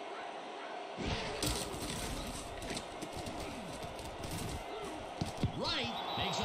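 Football players collide with thuds.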